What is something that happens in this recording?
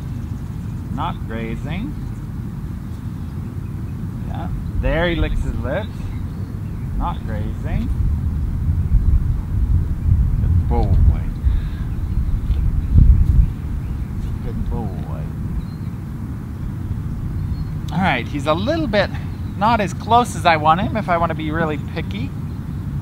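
A man speaks calmly in short phrases nearby.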